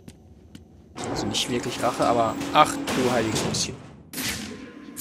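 A heavy metal door rumbles and slides open.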